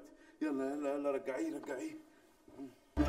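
A man groans and speaks drowsily close by.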